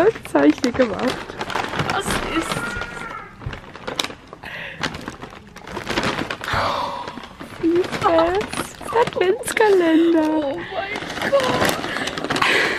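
A paper bag rustles and crinkles.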